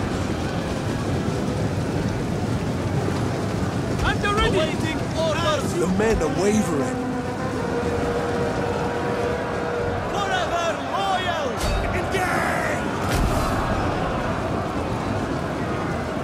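A large battle rages with a dense roar of clashing soldiers.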